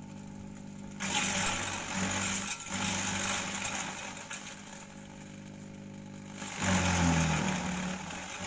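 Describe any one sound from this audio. A shredder chops leafy branches with a loud rough grinding.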